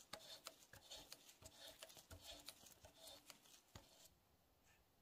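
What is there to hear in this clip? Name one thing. A metal tap grinds and squeaks as it cuts a thread into metal.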